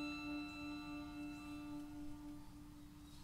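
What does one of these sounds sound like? A small string ensemble with a saxophone plays a held chord.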